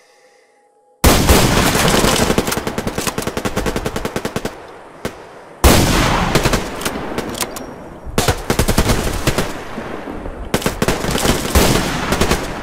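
A rifle fires loud single shots that echo.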